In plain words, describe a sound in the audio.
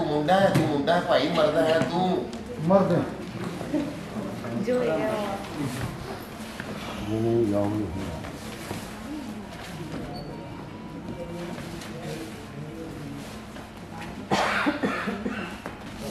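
A man speaks loudly, heard through a microphone in a hall.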